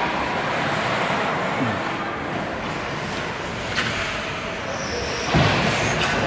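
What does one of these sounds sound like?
Ice skates scrape and carve across ice in a large echoing rink.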